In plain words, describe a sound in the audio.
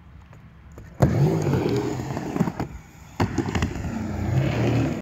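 Skateboard wheels roll and rumble on a concrete ramp.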